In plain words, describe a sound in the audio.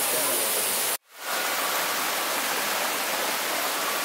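Water rushes over rocks in a stream.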